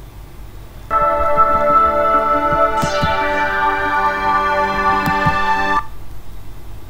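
Short intro music plays through computer speakers, then cuts off abruptly.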